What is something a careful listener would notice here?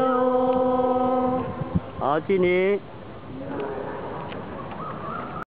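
Several middle-aged and elderly women talk nearby outdoors.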